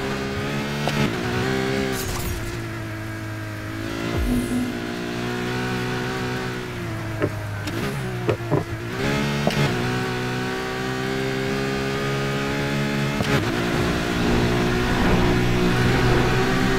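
A sports car engine roars at high speed, its pitch rising and falling as it shifts gears.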